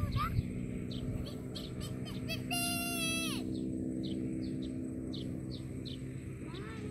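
Birds chirp in short, repeated calls.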